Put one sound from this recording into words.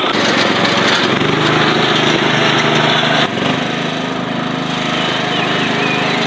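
A lawn tractor engine hums steadily.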